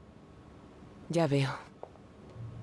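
A woman speaks briefly and calmly nearby.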